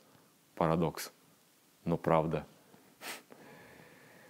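A middle-aged man speaks calmly and closely into a microphone, in short phrases.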